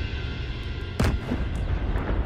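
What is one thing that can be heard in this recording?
A rifle shot cracks once.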